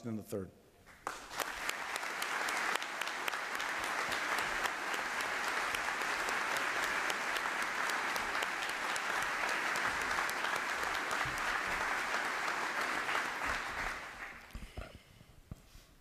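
A large crowd applauds steadily, then the applause fades.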